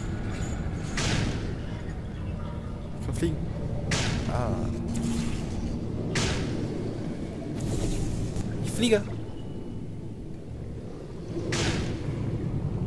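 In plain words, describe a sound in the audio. A gun fires with short, sharp whooshing bursts.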